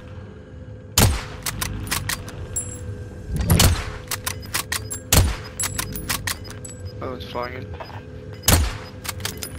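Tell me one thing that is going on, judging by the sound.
A sniper rifle in a video game fires loud, sharp shots.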